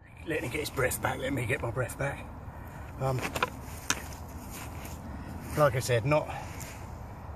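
A man talks calmly and close by, outdoors.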